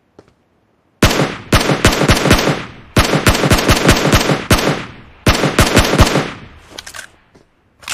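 A rifle fires loud rapid bursts of shots.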